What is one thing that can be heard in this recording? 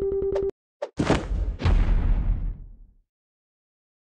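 A fiery explosion bursts and rumbles away.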